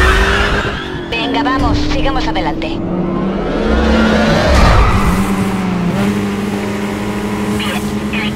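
Car engines roar at high speed.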